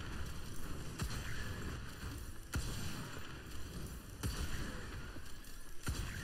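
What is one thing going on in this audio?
Magical blasts go off with sharp bangs.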